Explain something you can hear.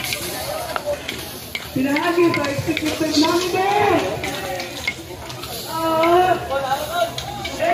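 Metal spoons scrape and clatter against a metal wok.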